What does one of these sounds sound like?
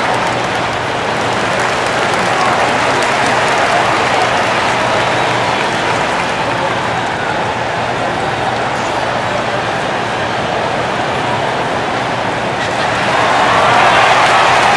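A large crowd murmurs and cheers steadily in a big echoing arena.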